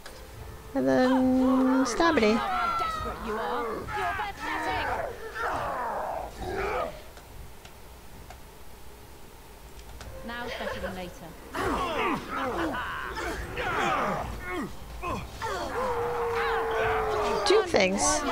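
Swords clash and clang in a game's fight.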